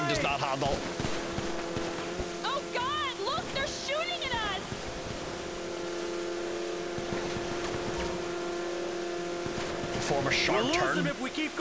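Water sprays and hisses behind a speeding watercraft.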